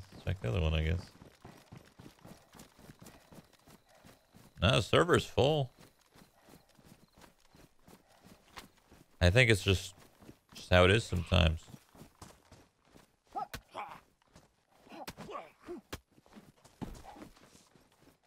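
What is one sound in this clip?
A young man talks with animation into a close microphone, in short bursts.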